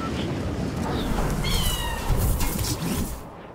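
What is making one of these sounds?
A glider snaps open with a fluttering whoosh.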